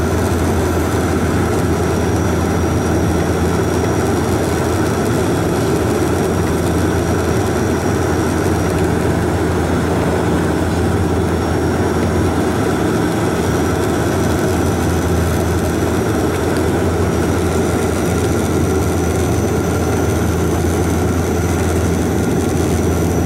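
An airplane's tyres touch down on a runway.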